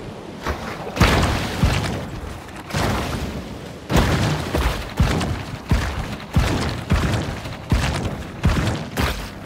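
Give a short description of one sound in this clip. Water splashes in repeated bursts as something swims through it.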